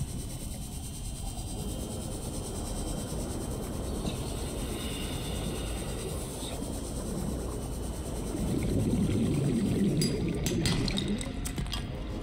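A small underwater vehicle hums steadily as it moves.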